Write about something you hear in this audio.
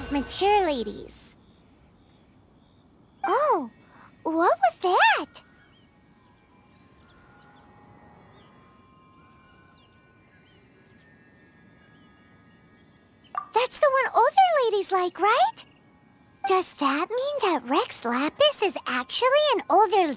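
A young girl speaks animatedly and high-pitched, close and clear.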